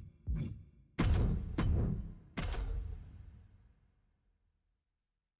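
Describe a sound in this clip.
Heavy booming hits ring out and slowly fade.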